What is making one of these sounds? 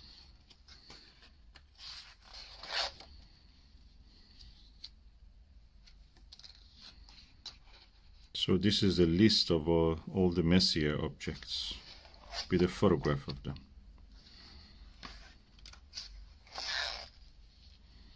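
Paper pages rustle and turn over in a spiral-bound book.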